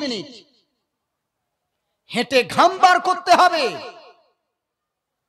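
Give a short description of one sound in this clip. A young man speaks with animation into a microphone, heard through a loudspeaker.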